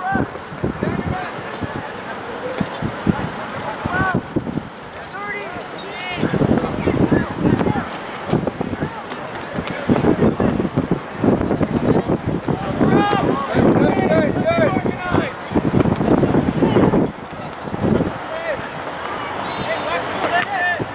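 Young men shout calls to each other across an open outdoor field.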